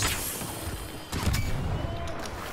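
Laser blasters fire in bursts.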